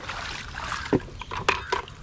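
Water sloshes in a bucket.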